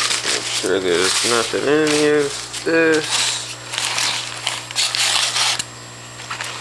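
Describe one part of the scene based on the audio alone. Crumpled paper rustles and crinkles.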